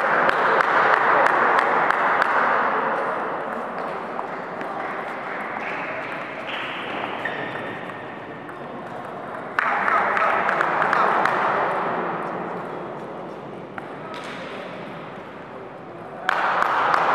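A ping pong ball bounces on a table with light clicks.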